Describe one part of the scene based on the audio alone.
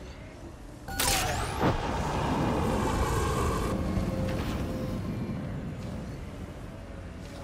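A loud blast bursts out suddenly and roars before fading.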